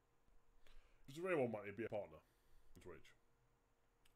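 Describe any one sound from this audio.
A man talks briefly close to a microphone.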